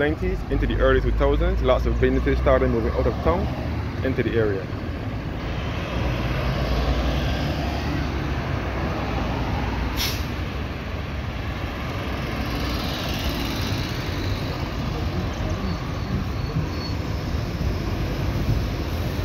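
Cars pass close by, their tyres rolling on asphalt.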